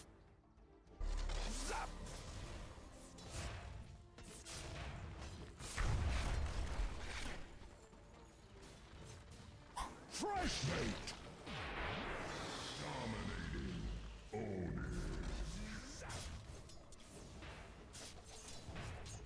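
Magic spells whoosh and burst during a fantasy battle.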